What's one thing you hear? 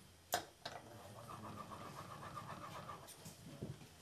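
A sharpening stone rasps against a metal blade.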